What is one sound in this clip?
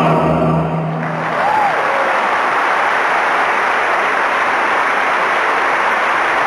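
A large outdoor crowd applauds and cheers.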